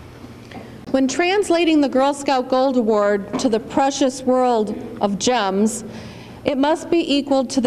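A second woman speaks calmly into a microphone over a loudspeaker.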